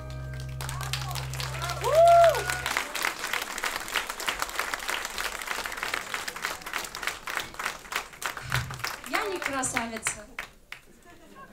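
An audience applauds and cheers.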